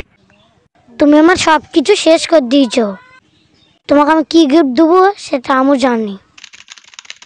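A young boy speaks close by, with animation.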